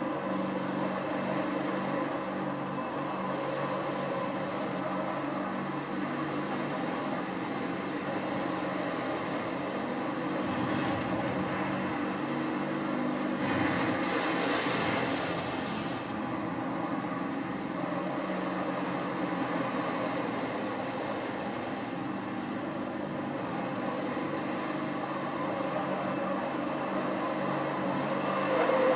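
A vehicle engine hums and roars steadily from a loudspeaker.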